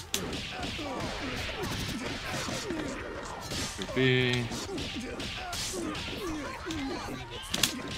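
Punches and kicks land with sharp, quick thuds in a video game fight.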